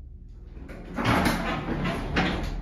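An elevator door slides open.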